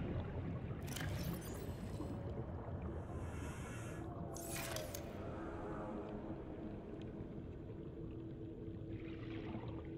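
A low underwater rumble drones steadily.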